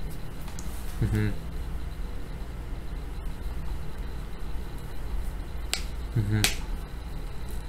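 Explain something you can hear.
A young man laughs briefly close by.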